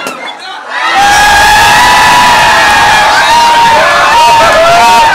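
A crowd cheers and shouts loudly in a packed room.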